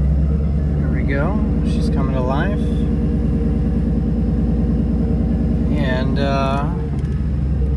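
A car engine revs up sharply twice.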